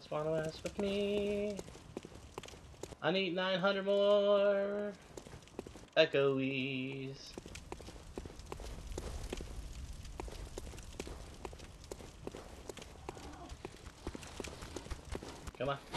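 Footsteps run on stone.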